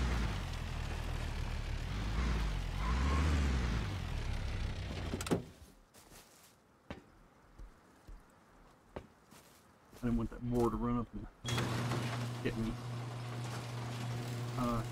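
A car engine rumbles and revs.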